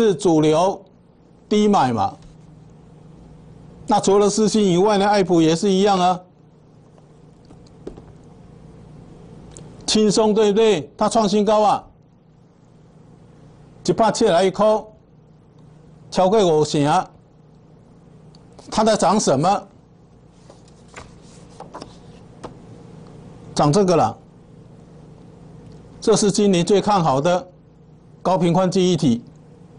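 An older man speaks calmly into a microphone in short phrases with pauses between them.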